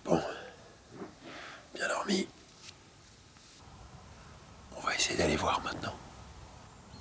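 A man speaks quietly and close by.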